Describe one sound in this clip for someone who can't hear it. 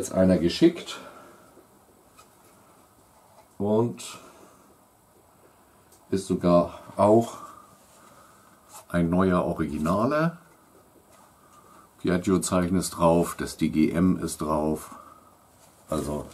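A middle-aged man talks calmly and close by, pausing now and then.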